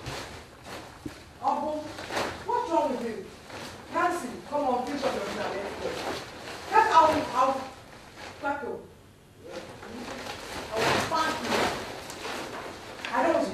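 Heavy cloth rustles and flaps.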